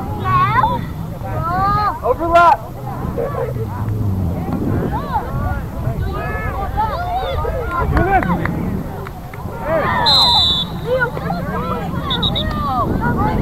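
Spectators on a sideline outdoors talk and call out.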